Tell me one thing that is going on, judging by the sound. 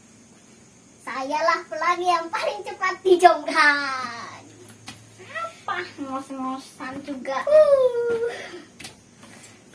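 Young boys talk and cheer excitedly close by.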